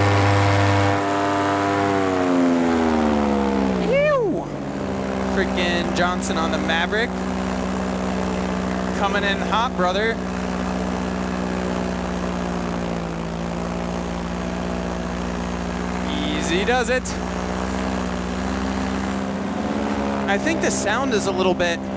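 A motor engine drones steadily close by, its pitch dropping early on and then holding.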